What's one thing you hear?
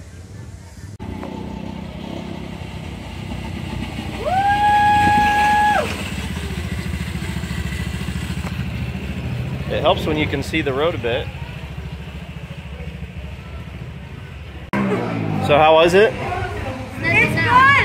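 A go-kart engine buzzes steadily as the kart drives past.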